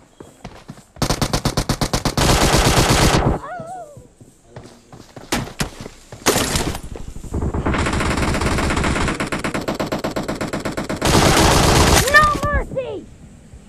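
Automatic gunfire rattles in rapid bursts.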